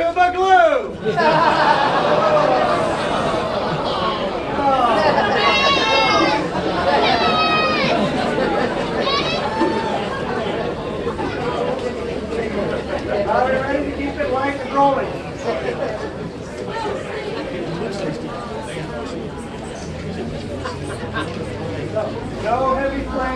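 A brass band plays a lively tune outdoors.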